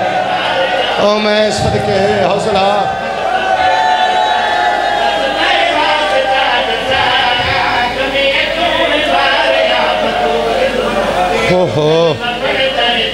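A young man sings loudly and with feeling into a microphone, heard through loudspeakers.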